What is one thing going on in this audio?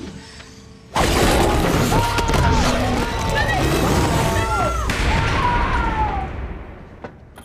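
A man screams in panic during a violent struggle.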